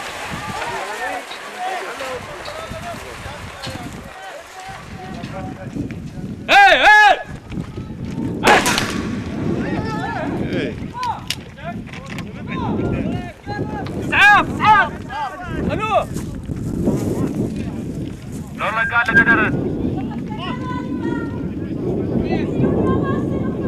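A crowd of men shouts and chants loudly outdoors.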